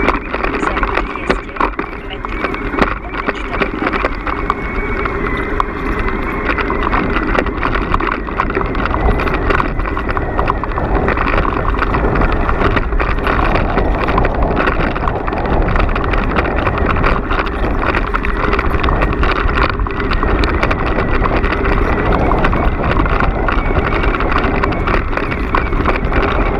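Wind rumbles steadily past outdoors.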